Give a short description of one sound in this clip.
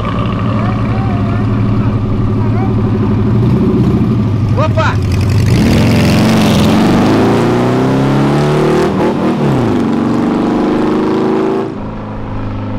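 A small car engine idles and then revs loudly as the car pulls away.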